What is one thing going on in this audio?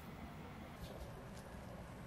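A spoon scrapes through damp powder in a glass jar.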